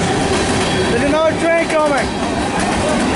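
Steel wheels squeal on the rails.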